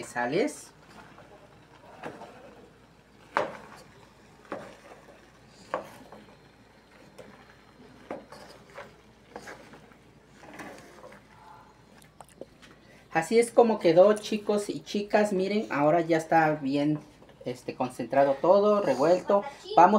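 A wooden spatula scrapes and stirs chopped vegetables in a pan.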